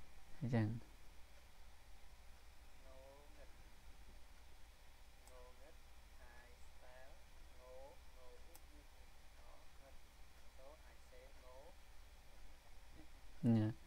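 A man speaks calmly and slowly through a microphone.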